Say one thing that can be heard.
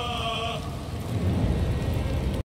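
A torch fire crackles.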